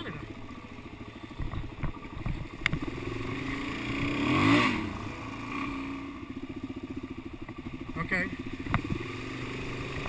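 Motorcycle tyres splash through muddy puddles.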